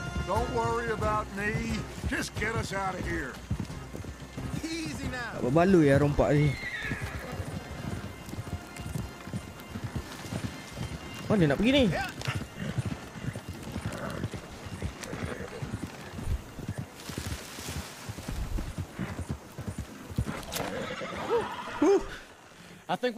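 Horse hooves clop on a dirt track.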